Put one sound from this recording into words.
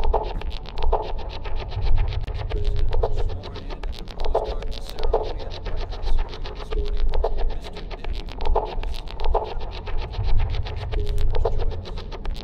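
Soft footsteps walk across a carpeted floor.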